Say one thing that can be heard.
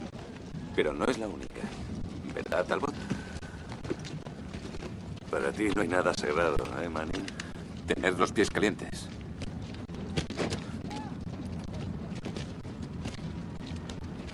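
Boots crunch on dirt as men walk.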